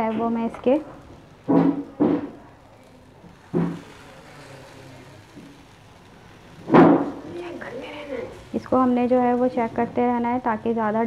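Food sizzles gently in a hot pan.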